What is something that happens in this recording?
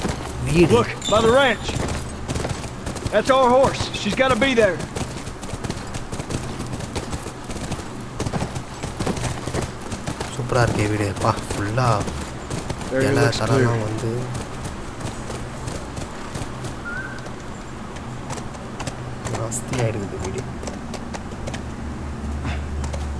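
Horse hooves clop steadily on a dirt trail.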